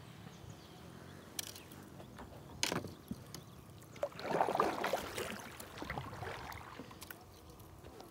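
A paddle splashes and dips in the water.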